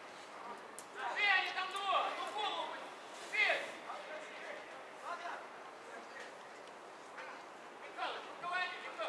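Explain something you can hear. Young men shout to each other from a distance across an open field.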